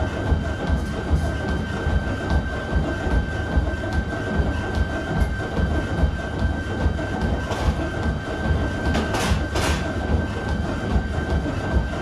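Running feet thud rhythmically on a treadmill.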